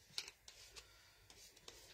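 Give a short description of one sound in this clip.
A pen scratches and taps lightly on paper.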